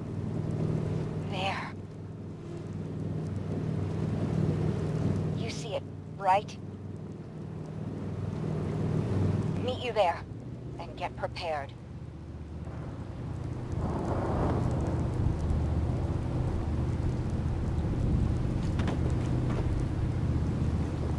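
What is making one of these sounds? Rough waves crash and splash against a boat's hull.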